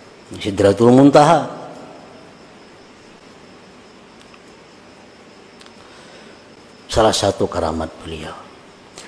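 A middle-aged man speaks slowly and solemnly into a microphone, with long pauses, in an echoing room.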